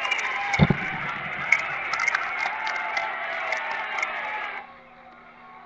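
Rock music with a distorted electric guitar plays from a television's speakers.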